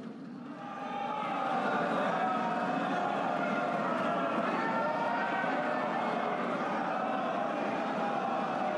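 A crowd of men shouts in a large echoing hall.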